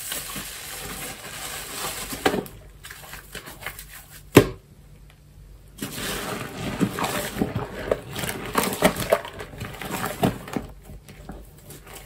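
Soap foam crackles and fizzes softly.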